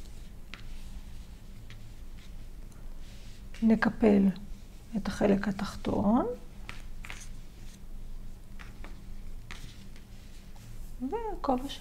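Hands rub and fold a knitted wool hat with a soft rustle.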